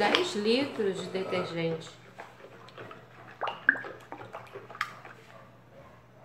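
Water sloshes and splashes as a stick stirs it in a tub.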